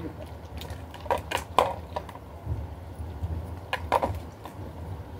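A dog chews and licks food from a hand.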